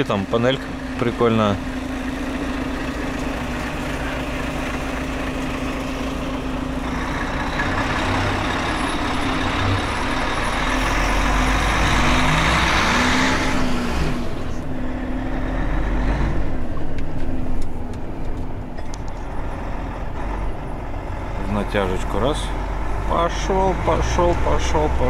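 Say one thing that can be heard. A truck's diesel engine hums steadily from inside the cab.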